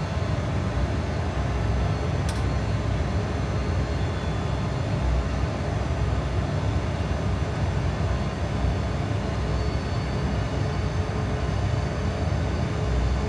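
Jet engines drone with a steady, deep rumble.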